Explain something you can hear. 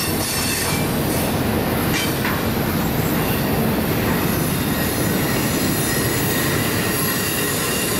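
A long freight train rumbles past close by, its wheels clattering on the rails.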